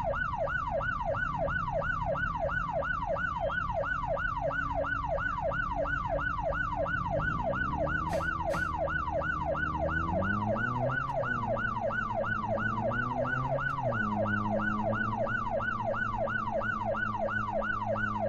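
A police siren wails in a fast, steady yelp.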